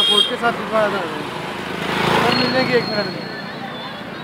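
A motorcycle engine roars past close by.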